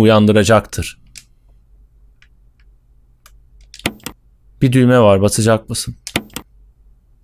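A man talks close to a microphone, with animation.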